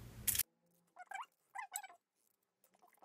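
Potato slices are laid on crinkling aluminium foil.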